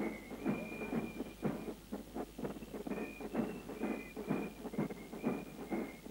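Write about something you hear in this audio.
A brass band plays a lively march with a steady drumbeat.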